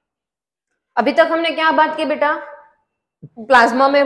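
A young woman speaks clearly and calmly, close by.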